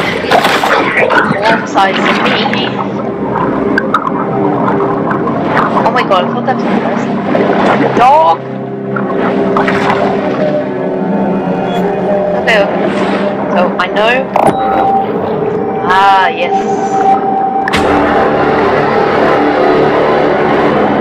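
Water swirls and bubbles as a fish swims underwater.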